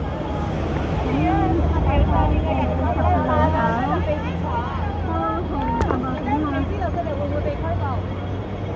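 Several men and women shout and talk loudly nearby.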